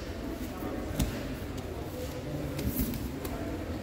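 Bodies thump onto a mat.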